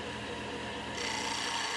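A hand tool scrapes against spinning wood.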